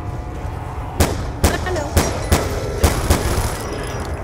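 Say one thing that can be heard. Gunshots fire in quick bursts, sharp and loud.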